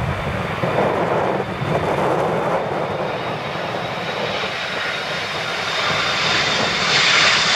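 A jet airliner roars loudly as it comes in to land, its engines whining higher as it nears.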